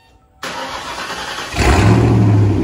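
A car's starter motor cranks.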